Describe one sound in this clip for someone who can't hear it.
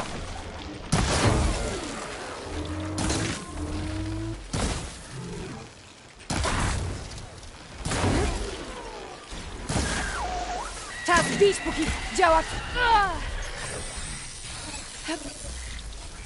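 Fire bursts and explosions crackle.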